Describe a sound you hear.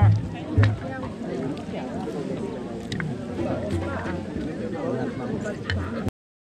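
Bones crack softly as hands tear apart a roasted bird.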